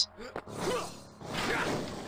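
A magical chime sparkles as an orb bursts.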